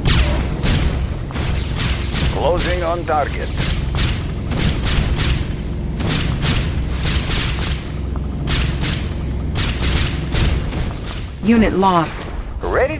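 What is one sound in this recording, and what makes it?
Explosions and gunfire crackle and boom in rapid bursts.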